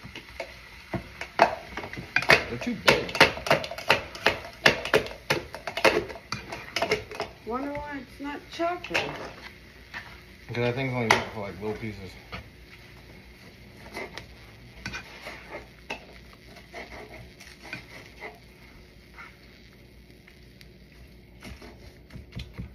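A spatula scrapes and clatters against a pan.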